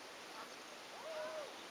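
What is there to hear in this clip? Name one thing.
A small dog yips and whines nearby.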